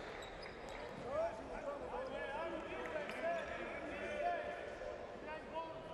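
Sneakers squeak sharply on a wooden court.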